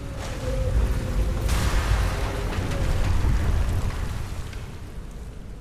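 Water rushes and splashes loudly nearby.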